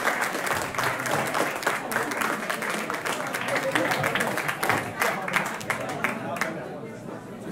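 A rock band plays loudly with electric guitars and drums.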